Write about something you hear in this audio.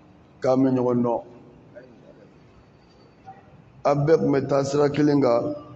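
An older man chants or recites in a drawn-out voice into a microphone, in a large echoing hall.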